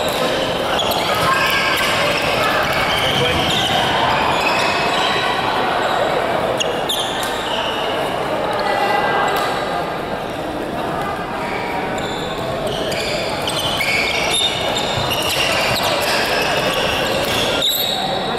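Shuttlecocks are struck by rackets with sharp pops in a large echoing hall.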